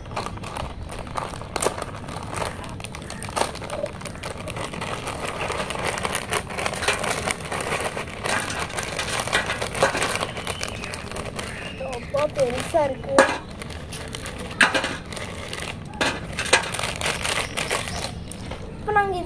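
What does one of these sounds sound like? A plastic snack packet crinkles and rustles as it is torn and shaken.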